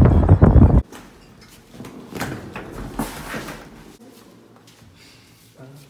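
Suitcase wheels roll over a tiled floor.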